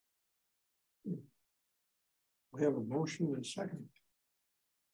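A man speaks briefly through a conference microphone.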